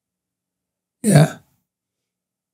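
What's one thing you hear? A man speaks a short burst into a close microphone.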